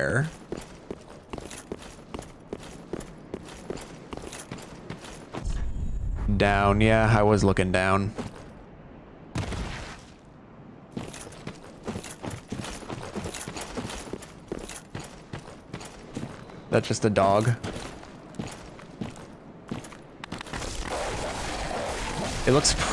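Armoured footsteps clink on stone.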